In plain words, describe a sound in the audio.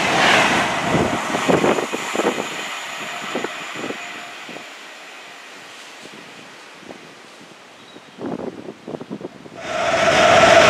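A train approaches along the track.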